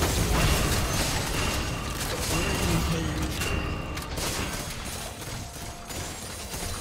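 Magic blasts and clashing weapons crackle and boom in a busy fight.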